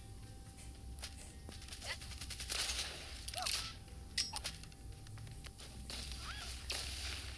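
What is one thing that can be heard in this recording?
Game gunfire crackles in short bursts.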